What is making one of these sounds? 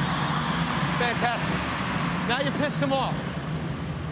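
A young man speaks urgently nearby.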